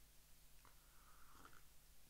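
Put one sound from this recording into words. A man sips from a mug.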